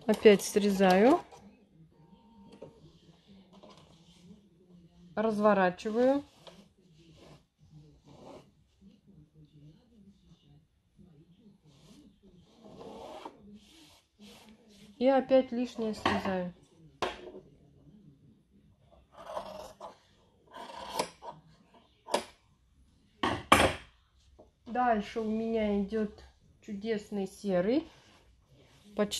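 A sewing machine hums and stitches.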